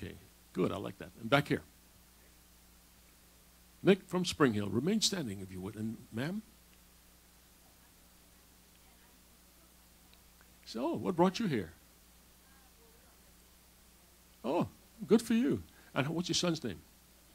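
A man speaks over a loudspeaker in short bursts with pauses.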